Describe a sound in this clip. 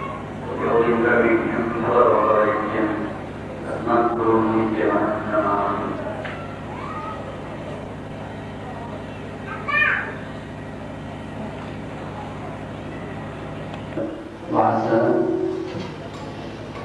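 A man speaks calmly into a microphone, with pauses.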